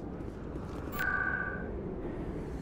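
An electronic beep chimes once.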